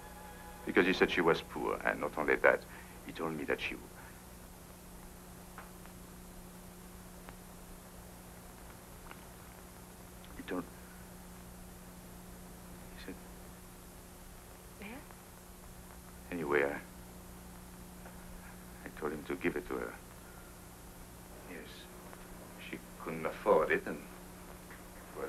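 A man speaks calmly and clearly in short phrases, with long pauses.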